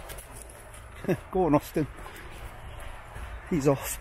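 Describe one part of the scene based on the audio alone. A small dog's paws patter on dry leaves.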